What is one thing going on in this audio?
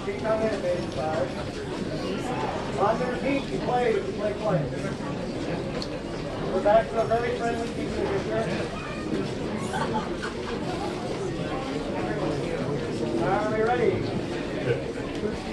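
A brass band of tubas and horns plays a tune outdoors.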